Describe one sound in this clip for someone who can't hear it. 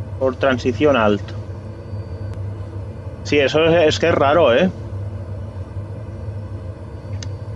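A propeller aircraft's engine drones steadily.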